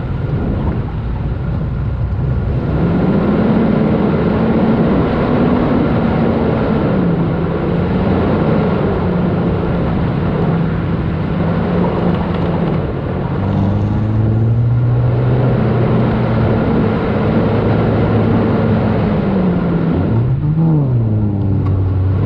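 Tyres rumble over soft sand.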